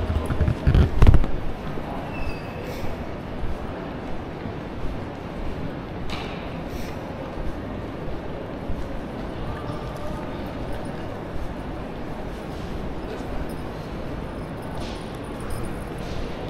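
Suitcase wheels roll across a smooth floor.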